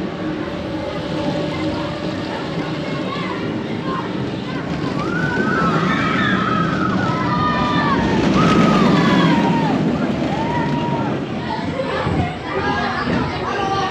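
A roller coaster train rumbles and roars along its track.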